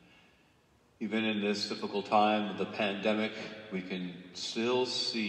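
A man chants loudly in a large echoing hall.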